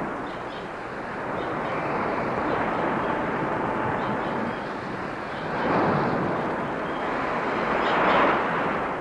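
Waves crash against rocks and surf rushes in steadily.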